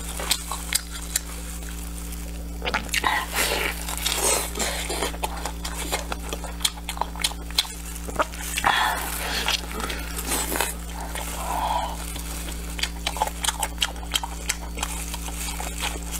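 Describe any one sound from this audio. Plastic gloves crinkle as hands tear food apart.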